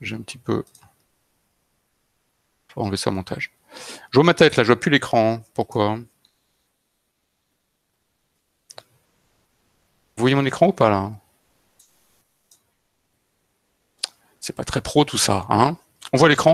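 A middle-aged man talks calmly in short bursts with pauses, heard through an online call microphone.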